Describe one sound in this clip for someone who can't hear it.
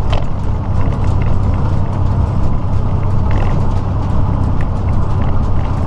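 A truck engine drones steadily as it drives down the highway.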